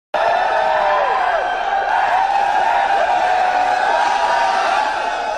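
A large crowd of young men cheers and screams loudly.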